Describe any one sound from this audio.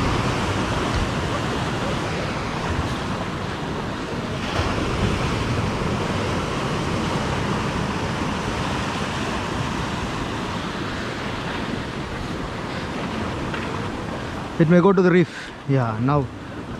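Waves crash and surge against rocks.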